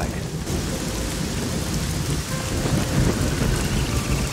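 A campfire crackles and hisses.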